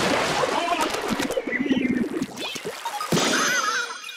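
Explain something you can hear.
Wet ink splatters loudly with a squelching burst.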